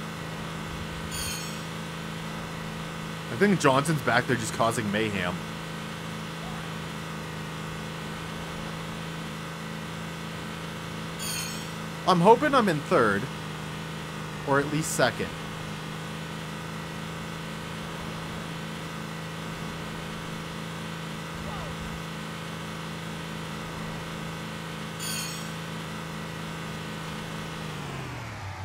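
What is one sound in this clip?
A small motor engine hums steadily.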